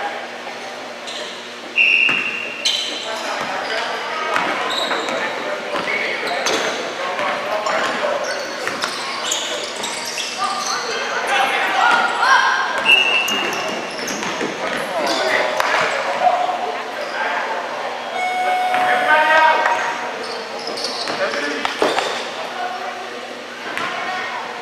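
A crowd of spectators cheers and calls out in a large echoing hall.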